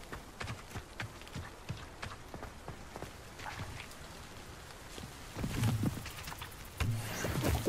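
Footsteps crunch quickly on a dirt path.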